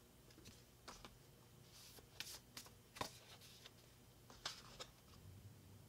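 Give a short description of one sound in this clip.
Paper cards rustle and tap as they are handled.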